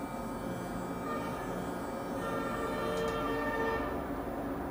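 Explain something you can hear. A small electric face brush hums softly against skin.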